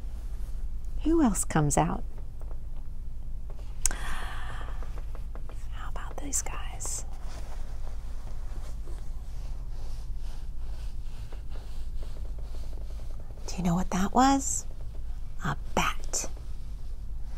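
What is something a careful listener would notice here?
A middle-aged woman speaks close by in short, lively bursts.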